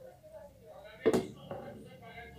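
A glass clinks down onto a plate.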